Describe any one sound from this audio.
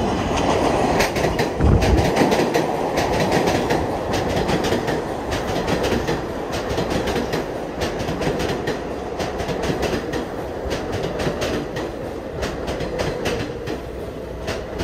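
Steel wheels clatter rhythmically over rail joints.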